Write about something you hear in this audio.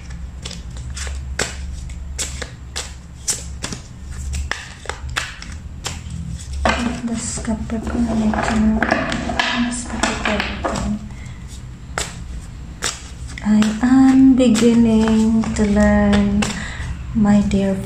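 Playing cards tap and flick against each other.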